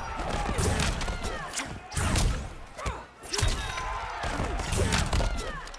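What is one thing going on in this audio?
Fighters land heavy punches and kicks with sharp thuds and cracks.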